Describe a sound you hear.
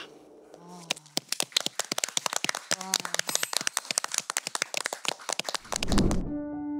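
A small group applauds.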